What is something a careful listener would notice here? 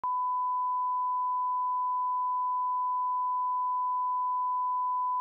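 A steady, high-pitched test tone sounds without a break.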